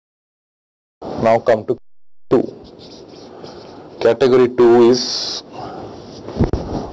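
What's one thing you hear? A man lectures calmly, heard through a recording.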